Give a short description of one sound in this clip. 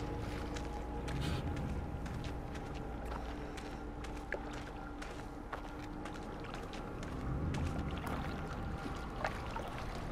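Footsteps crunch over stones and grass.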